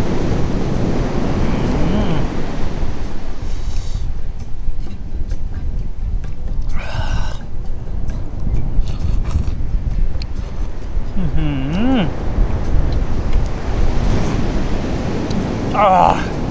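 Surf washes gently onto a beach.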